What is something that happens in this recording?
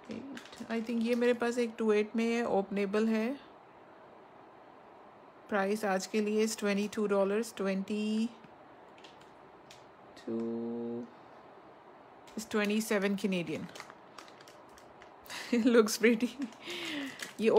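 A plastic packet crinkles as it is handled.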